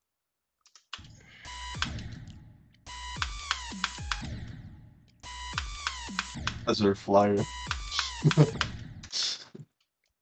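Fast electronic game music plays with a pounding beat, cutting off and restarting.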